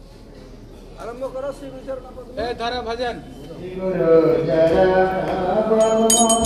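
Men chant together nearby, in a rising and falling melody.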